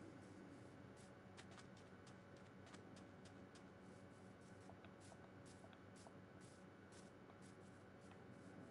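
Footsteps thud steadily across grass and dirt.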